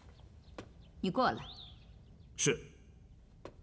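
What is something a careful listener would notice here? A man answers briefly, close by.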